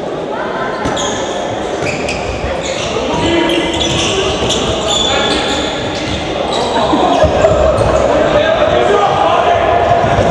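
A ball bounces on a hard floor.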